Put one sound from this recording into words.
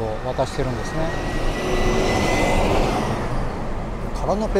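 A bus drives past close by with a loud engine rumble.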